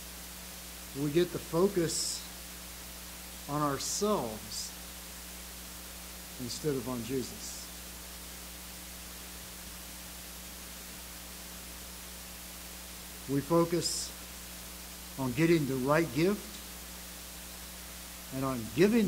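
An elderly man speaks slowly and calmly into a microphone, with long pauses between phrases.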